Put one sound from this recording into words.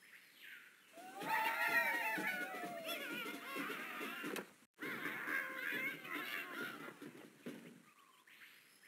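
A cheerful jingle plays for the win.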